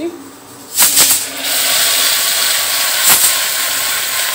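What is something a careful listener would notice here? Food sizzles loudly as it drops into hot oil.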